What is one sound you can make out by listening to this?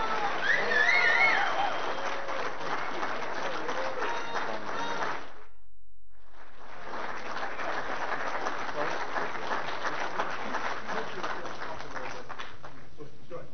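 An audience claps and applauds in a hall.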